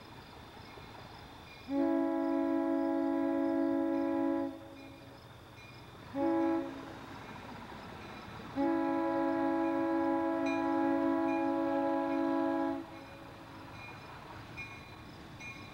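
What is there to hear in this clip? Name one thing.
A diesel locomotive rumbles as it approaches.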